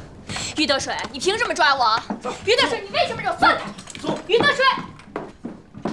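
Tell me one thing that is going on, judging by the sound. A young woman speaks sharply and with agitation.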